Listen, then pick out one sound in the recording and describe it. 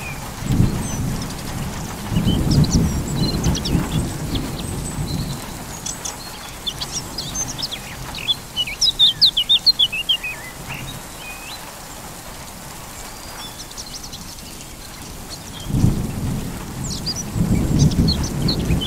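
Wind gusts across an open hillside.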